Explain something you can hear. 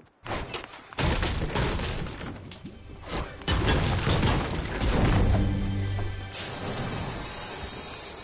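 A pickaxe strikes wood with repeated sharp knocks.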